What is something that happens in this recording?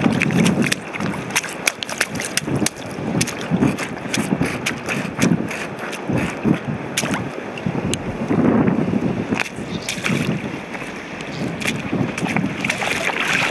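Shallow water laps and trickles over rocks.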